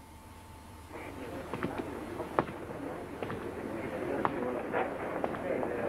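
A distant crowd murmurs in a large echoing hall.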